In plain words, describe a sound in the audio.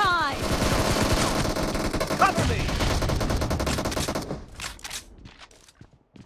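Rifle gunfire rattles in quick bursts.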